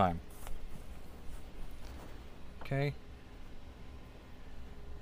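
A rope rustles softly.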